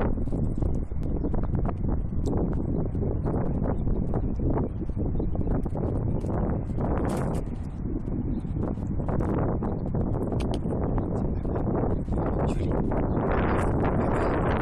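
Strong wind rumbles and buffets outdoors throughout.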